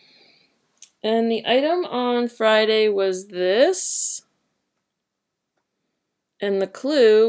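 A woman speaks close to a microphone with animation.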